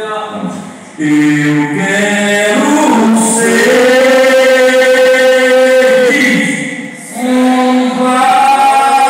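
An elderly man sings through a microphone and loudspeaker.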